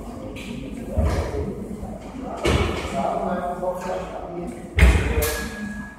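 Weight plates of an exercise machine thud down.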